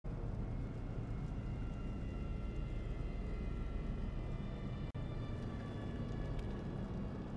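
Propeller warplanes drone overhead.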